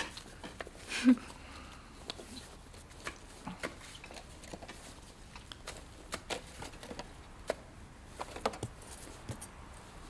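Utensils clink and scrape against a salad bowl.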